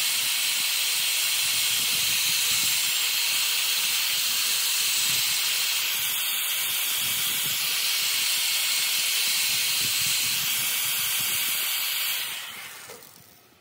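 A high-speed rotary tool whines loudly as it sands a spinning piece of wood.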